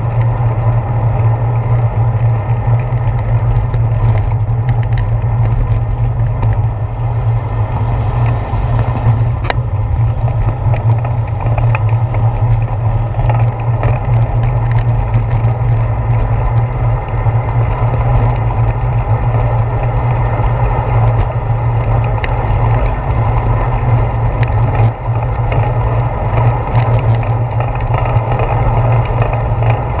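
Tyres of a bicycle hum on a paved path.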